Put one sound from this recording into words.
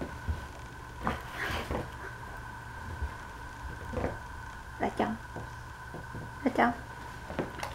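A dog scratches and scrapes at a rug with its paws.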